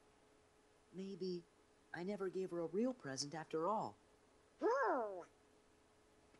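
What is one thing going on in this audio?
A man speaks thoughtfully.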